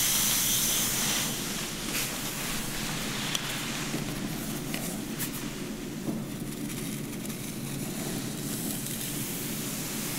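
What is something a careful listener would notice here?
Fingers rustle through damp hair close up.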